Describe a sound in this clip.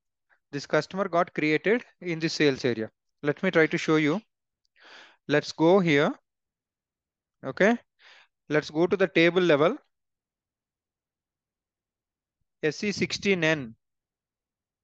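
A young man speaks calmly and explains, close to a microphone.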